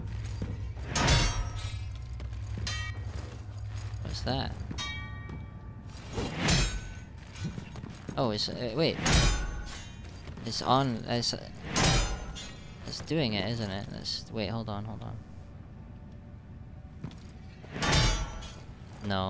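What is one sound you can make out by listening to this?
A heavy blade swishes through the air and strikes.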